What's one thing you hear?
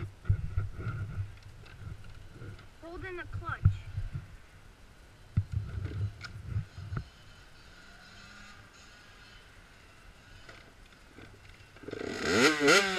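A small motorbike engine is kicked over and sputters without starting.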